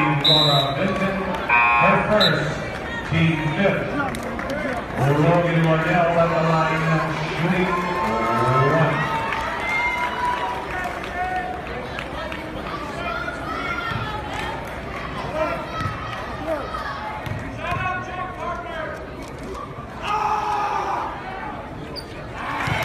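A crowd of spectators chants and cheers loudly in a large echoing gym.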